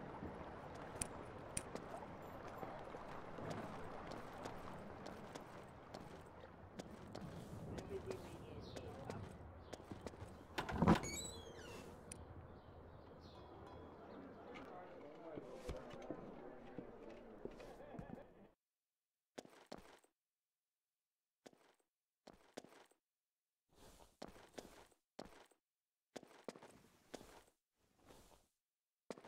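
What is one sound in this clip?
Footsteps run quickly over dry ground.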